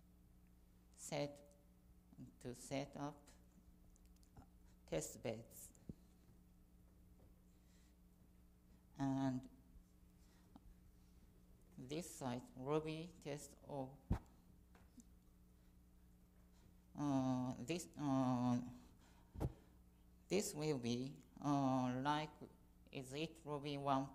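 A young woman speaks through a microphone in a calm lecturing manner, with pauses.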